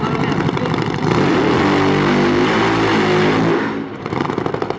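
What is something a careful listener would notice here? A second drag bike engine revs loudly nearby.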